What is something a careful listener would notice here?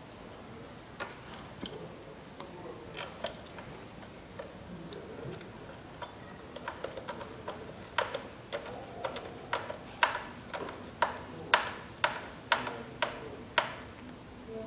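Plastic parts click and snap sharply as hands work on them.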